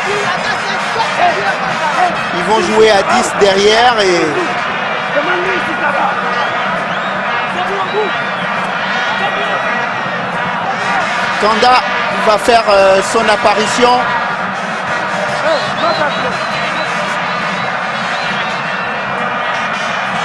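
A large stadium crowd cheers and sings loudly throughout.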